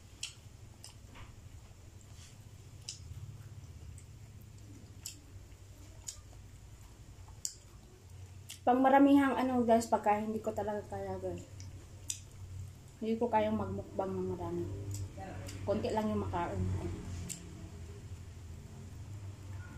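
Crispy fried meat crackles as a young woman tears it apart by hand.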